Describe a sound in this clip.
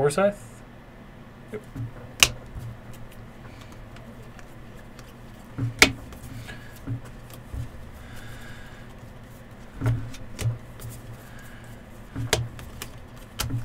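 Cards shuffle and slide against each other in someone's hands.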